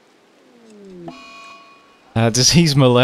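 A short electronic alert chimes.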